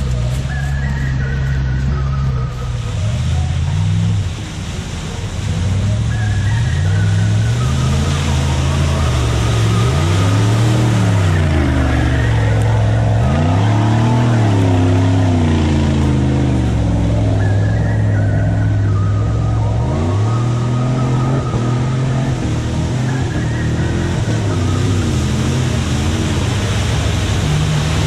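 An engine roars and revs hard as a vehicle churns through deep mud.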